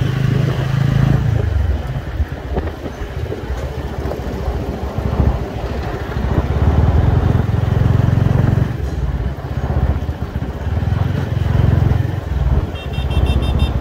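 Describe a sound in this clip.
Wind rumbles loudly against a microphone.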